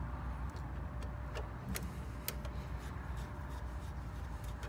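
Small wires click and rustle as a hand handles them.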